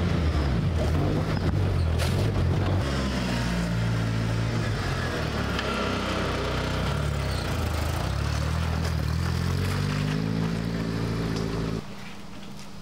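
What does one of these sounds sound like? A car engine in an off-road buggy revs up and down as the buggy drives along a dirt track.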